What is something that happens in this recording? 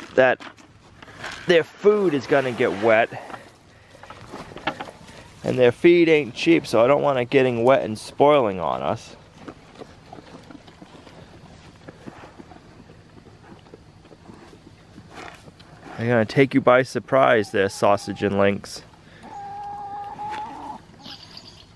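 Pigs munch and slurp feed from a bowl.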